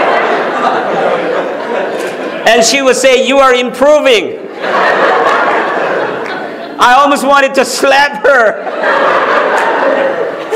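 A middle-aged man laughs heartily.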